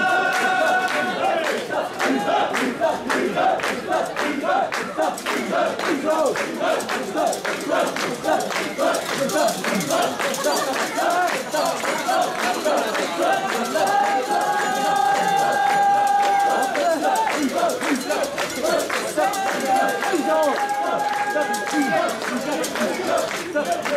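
A crowd of men chant loudly in rhythm, close by.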